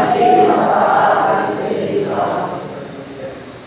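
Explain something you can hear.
A man speaks aloud in a calm, chanting voice, echoing slightly in a room.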